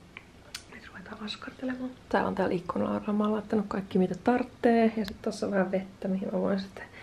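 A young woman speaks softly and calmly, close to the microphone.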